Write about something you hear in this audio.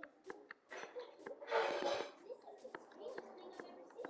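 Dirt blocks crunch in quick, short knocks as they are dug.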